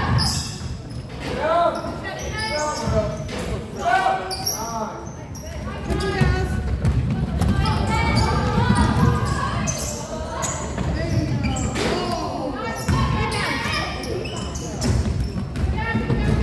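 Young women shout and call out to one another in a large echoing hall.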